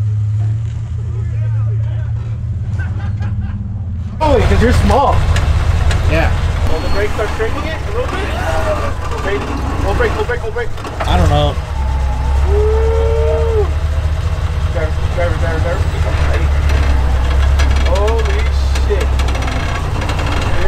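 An off-road truck's engine rumbles low as it crawls over rocks.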